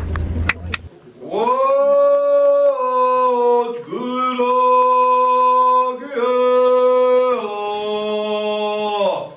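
A group of men sings together in harmony.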